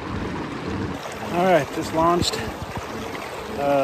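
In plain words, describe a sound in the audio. A middle-aged man talks loudly and with animation close to a microphone.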